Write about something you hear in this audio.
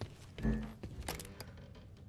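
Short electronic menu blips sound.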